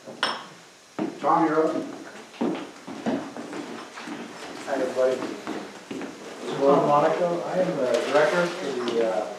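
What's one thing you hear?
A man speaks clearly and firmly into a microphone.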